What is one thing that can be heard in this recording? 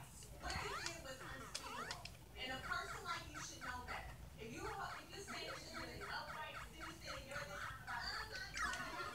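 Chirpy electronic game music and sound effects play from a television speaker.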